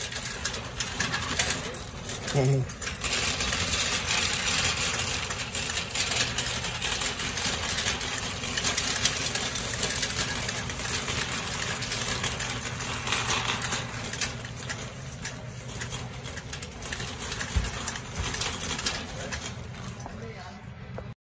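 A metal shopping cart rattles as it rolls over a smooth floor.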